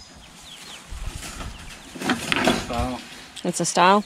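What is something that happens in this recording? Wire mesh rattles as a cage panel is set down.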